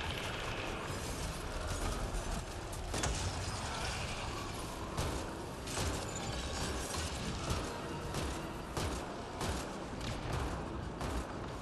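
Gunfire from a weapon rattles in rapid bursts.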